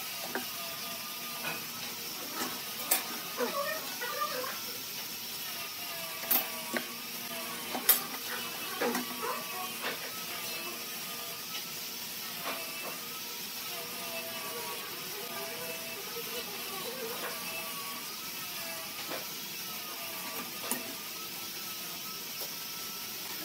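A metal square knocks down onto a wooden board.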